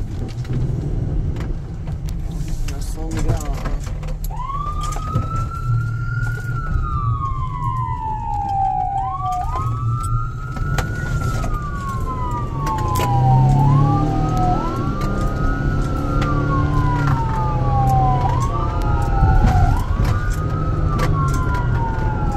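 A car engine rumbles steadily while driving.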